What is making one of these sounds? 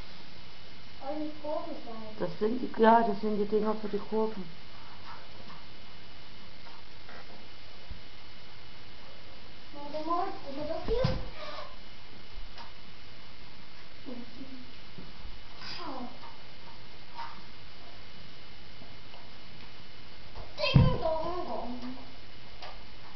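A child speaks close by in short, lively bursts.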